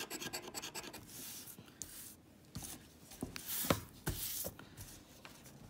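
A paper card rustles as it is handled.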